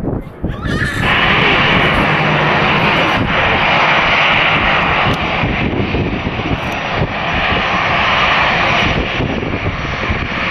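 A jet airliner's engines whine and roar as it taxis close by.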